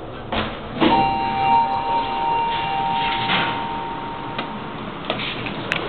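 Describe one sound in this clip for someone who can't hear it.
A steady electronic tone beeps and rings out, then fades.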